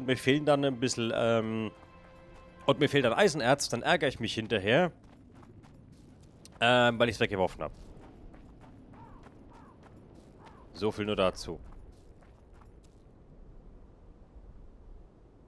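Footsteps crunch softly through dry grass.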